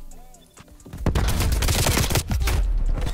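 A rifle fires loud shots that boom and echo.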